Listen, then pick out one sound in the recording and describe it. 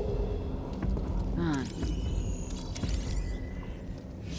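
A lightsaber swooshes through the air in quick swings.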